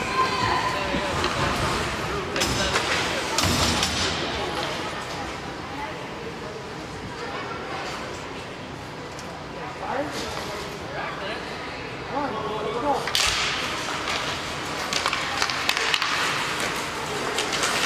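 Ice skates scrape and hiss across ice in an echoing rink.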